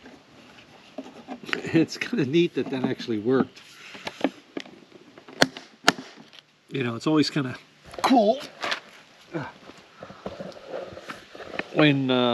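A middle-aged man talks casually and close by.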